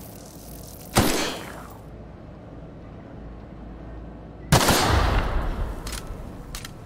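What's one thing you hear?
A gun fires single loud shots that ring out and echo.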